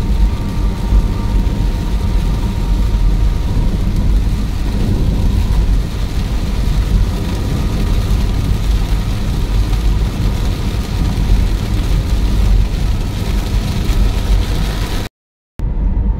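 Heavy rain drums on a car's windscreen and roof.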